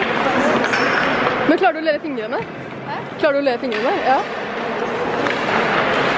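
Ice skates scrape across ice.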